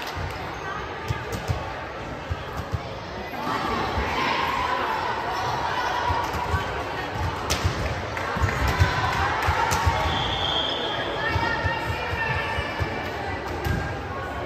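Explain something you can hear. Players' sneakers squeak on the court.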